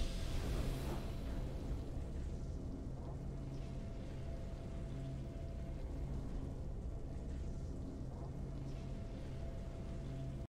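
Soft game music plays steadily.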